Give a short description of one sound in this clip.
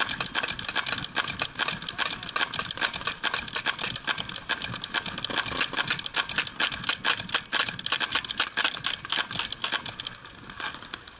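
A paintball marker fires rapidly close by, with sharp popping shots.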